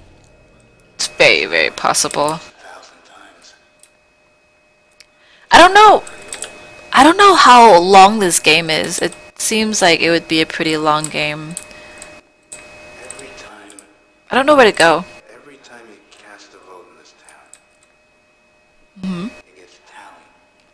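A young woman talks into a headset microphone.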